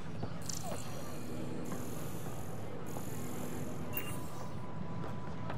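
A laser beam fires with a sizzling hiss.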